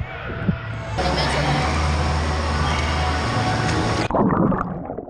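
A young boy splashes water with his arms.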